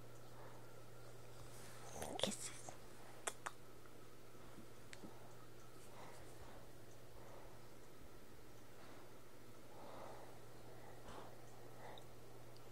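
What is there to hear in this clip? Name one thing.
A dog sniffs and snuffles close by.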